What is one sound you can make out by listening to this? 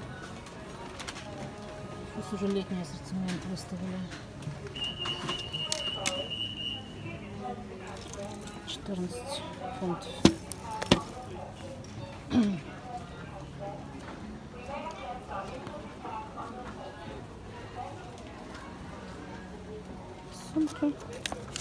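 Adult shoppers talk in the background.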